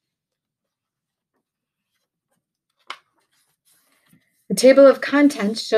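Paper book pages turn with a soft rustle.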